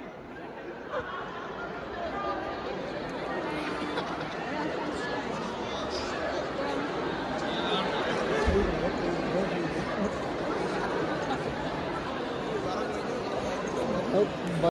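A large audience chatters and murmurs in a large echoing hall.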